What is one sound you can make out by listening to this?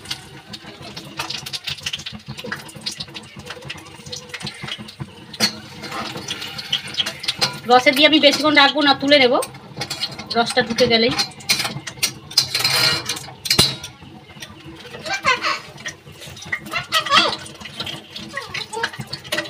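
Batter sizzles in hot oil in a frying pan.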